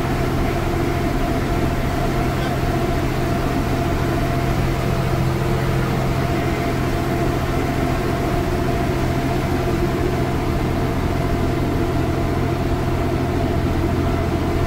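Wind rushes in through an open bus door.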